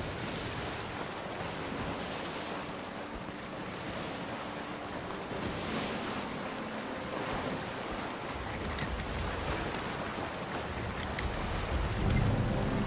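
Ocean waves roll and splash against a ship's hull.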